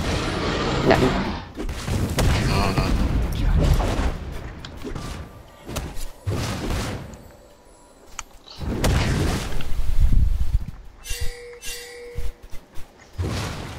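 Fighting sound effects clash and crackle in a video game.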